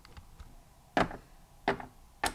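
Light plastic tapping as a small toy figure is set down.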